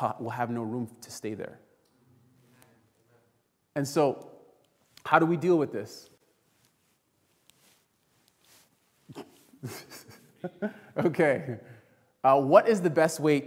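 A man preaches with animation through a microphone in a large echoing hall, with pauses between phrases.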